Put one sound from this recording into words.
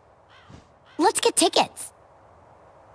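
A young man exclaims with excitement.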